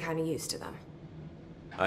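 A woman speaks briefly and quietly.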